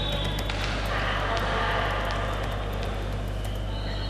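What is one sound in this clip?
A volleyball bounces on a hard court floor.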